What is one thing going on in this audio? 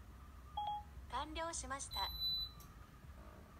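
A phone's synthetic voice replies briefly through a small speaker.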